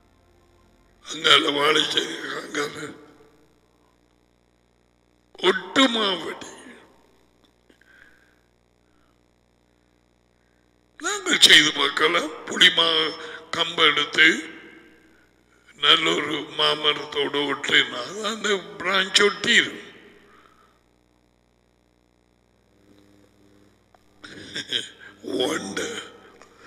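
A middle-aged man speaks with animation into a close headset microphone, in bursts with pauses.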